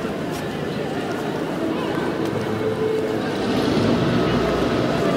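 Many people chat in the distance outdoors.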